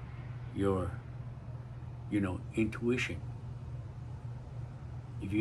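A middle-aged man speaks calmly and close by, in short phrases.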